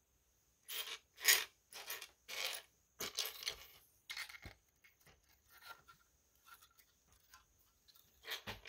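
Plastic toy bricks clatter and click as a hand sorts through them.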